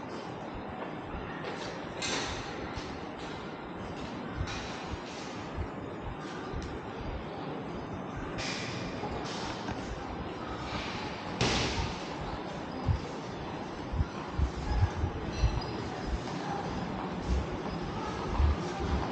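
A steady murmur of background noise fills a large roofed space.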